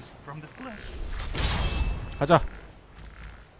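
A magic spell whooshes and crackles loudly.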